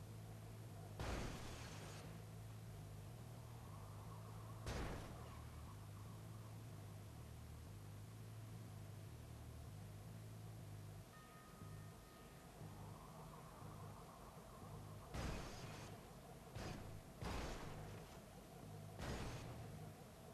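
Cars bump and thud against each other.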